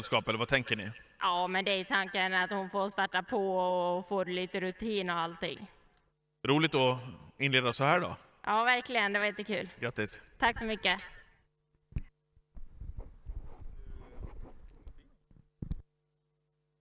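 A young woman answers with animation into a microphone.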